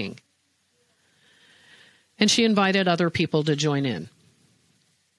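An older woman speaks calmly and closely into a microphone.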